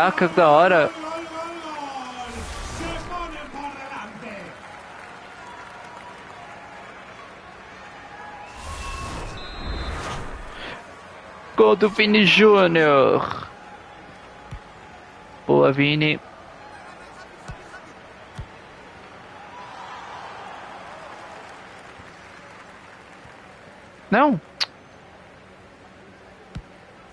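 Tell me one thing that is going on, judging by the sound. A crowd murmurs and cheers in the stands.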